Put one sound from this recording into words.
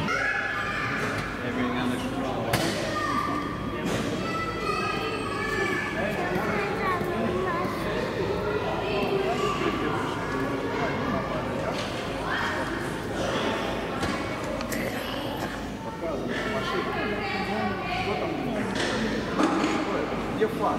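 A young boy talks in a high voice.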